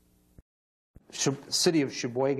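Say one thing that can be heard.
An older man speaks through a microphone.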